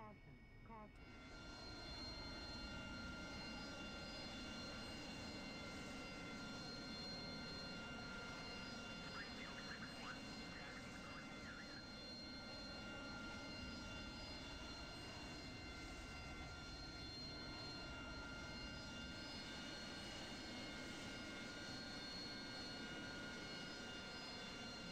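A Harrier jet's turbofan whines at idle, heard from inside the cockpit.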